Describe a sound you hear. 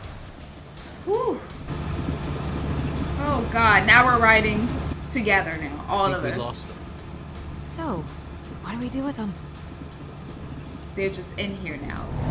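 A young woman talks and reacts close to a microphone.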